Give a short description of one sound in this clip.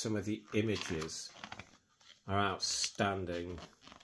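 A page of a book rustles as it is turned.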